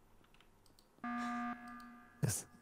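A game alert sounds with a bright, ringing tone.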